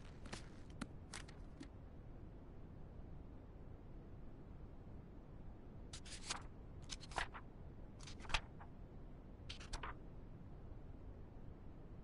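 Notebook pages turn with soft papery flips.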